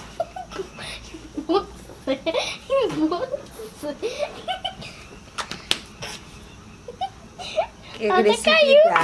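A young girl talks and laughs excitedly close by.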